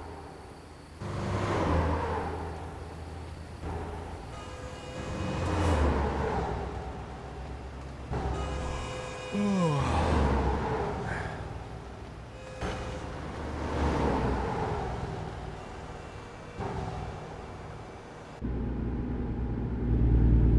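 Cars and trucks whoosh past on a highway, one after another.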